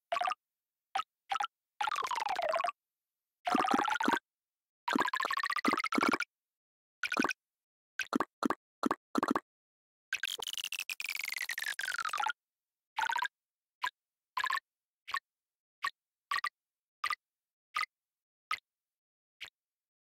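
Short electronic chimes and rising tones play in quick bursts.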